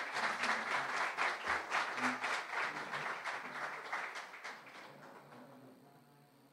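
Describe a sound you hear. A crowd applauds loudly, then the clapping fades away.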